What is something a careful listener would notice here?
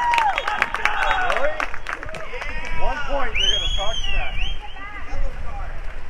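A crowd of spectators cheers and shouts.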